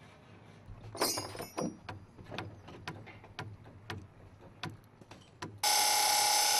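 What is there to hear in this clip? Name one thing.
A wooden mallet knocks against a wooden boat hull.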